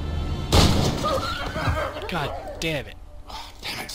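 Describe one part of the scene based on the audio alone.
A wolf howls nearby.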